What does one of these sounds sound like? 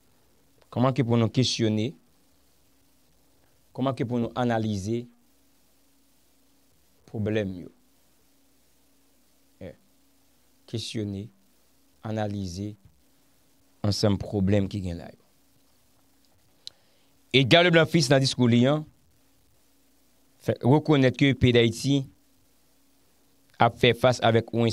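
A young man speaks calmly and closely into a microphone, in short phrases with pauses.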